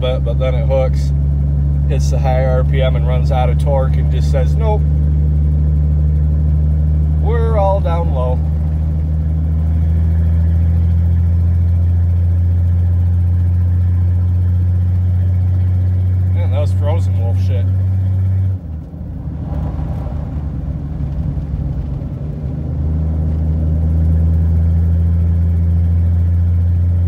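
A car engine hums steadily while driving, briefly easing off and then pulling again.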